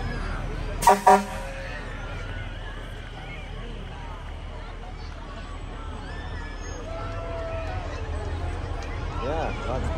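A fire truck engine rumbles as it rolls slowly past.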